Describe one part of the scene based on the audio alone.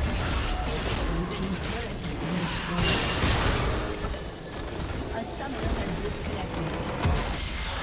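Video game spell effects zap and crackle during a battle.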